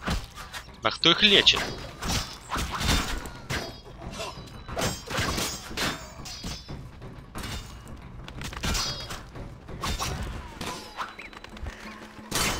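Swords clash and clang with metal armour.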